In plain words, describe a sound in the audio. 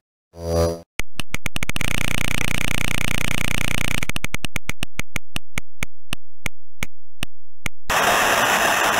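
A game wheel clicks rapidly as it spins, then slows down.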